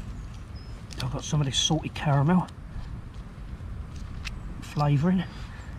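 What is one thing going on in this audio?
A small metal shaker rattles as it is shaken.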